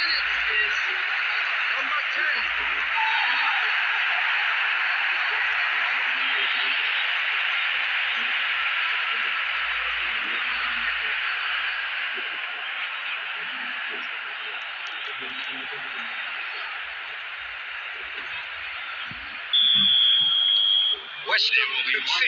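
A large stadium crowd roars steadily and slowly fades.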